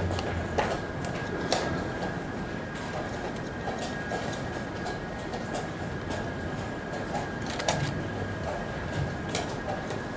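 Chess pieces clack sharply on a wooden board.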